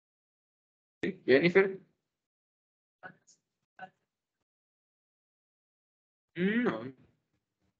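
A young man speaks calmly in short phrases through an online call.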